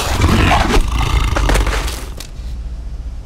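Explosions burst and crackle loudly.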